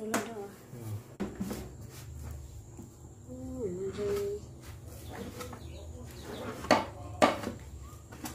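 A knife taps and scrapes on a metal tray.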